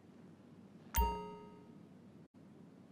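A game chime rings out.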